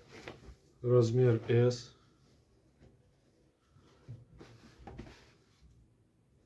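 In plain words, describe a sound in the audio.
Cloth rustles softly as hands smooth and fold it.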